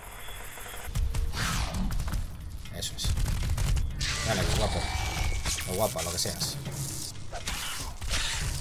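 A sword clashes and strikes during a fight.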